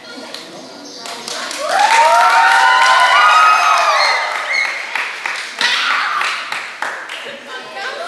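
Teenage girls clap their hands in rhythm.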